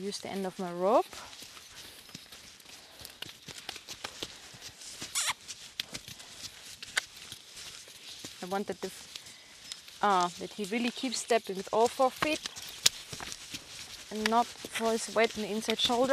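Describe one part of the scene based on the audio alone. A young woman talks calmly and close by, outdoors.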